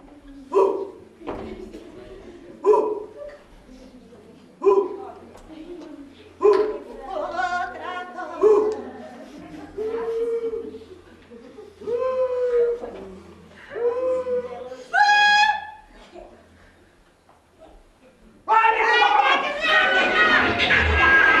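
A performer speaks in a high, animated character voice.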